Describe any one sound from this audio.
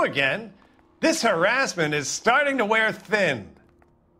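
An older man answers calmly nearby.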